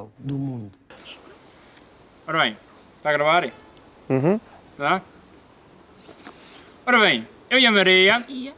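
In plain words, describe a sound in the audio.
A young man speaks close by outdoors.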